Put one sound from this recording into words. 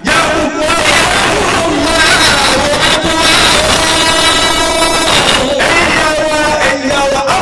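An elderly man speaks loudly into a microphone, heard through loudspeakers.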